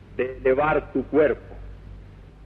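A man speaks a few words in a low, calm voice.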